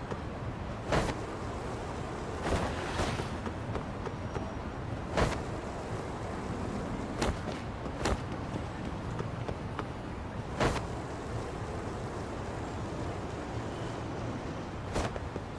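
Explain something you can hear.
A skateboard clacks sharply as it hits the ground.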